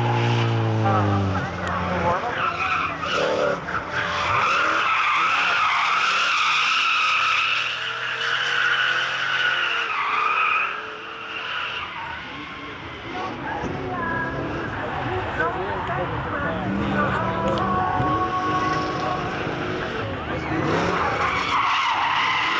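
A car engine roars and revs hard.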